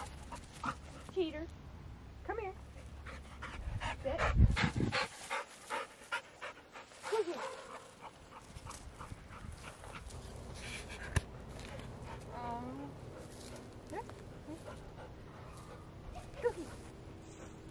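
A young woman talks to a dog in an encouraging voice, nearby.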